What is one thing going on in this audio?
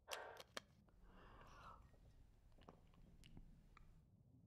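Water gulps as someone drinks.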